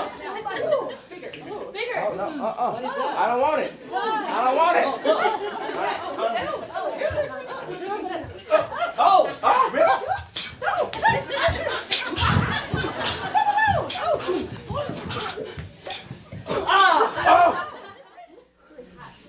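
Young men and women call out and talk with animation, close by in a large room.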